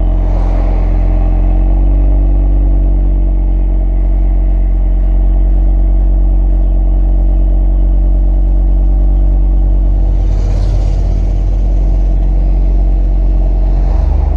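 An Audi RS3's turbocharged inline-five engine idles with a deep, steady burble.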